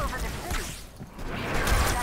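An energy weapon fires in sharp bursts.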